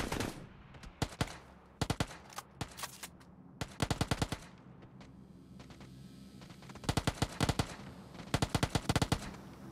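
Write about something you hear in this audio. Rapid gunshots fire in short, sharp bursts.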